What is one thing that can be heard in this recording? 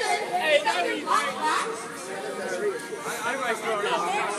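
A crowd of people chatter and call out nearby.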